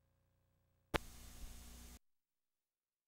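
A short burst of harsh static hiss cuts in and stops abruptly.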